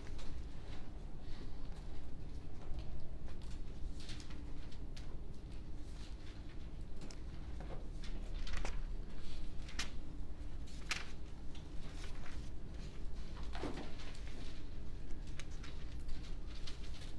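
Paper rustles as pages are handled.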